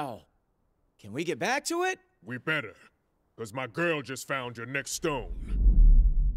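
A deep-voiced man speaks gruffly.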